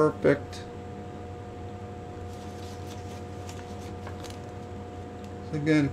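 Paper rustles as a sheet is lifted.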